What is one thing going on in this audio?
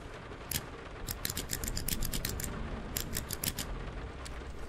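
A safe dial clicks quickly as it turns.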